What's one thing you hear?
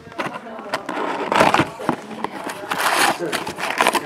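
A cardboard box lid is lifted open.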